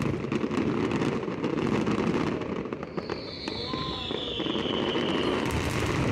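Fireworks crackle and pop rapidly in the distance.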